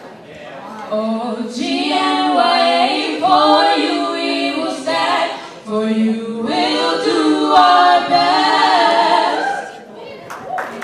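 Several young women sing together in harmony through microphones and loudspeakers.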